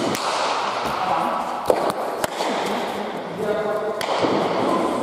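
A ball smacks sharply against a wall and echoes through a large hall.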